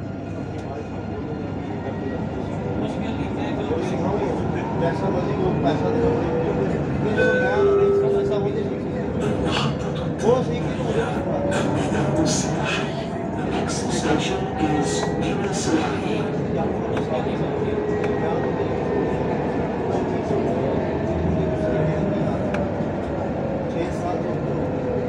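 Traffic rumbles past steadily on a nearby road.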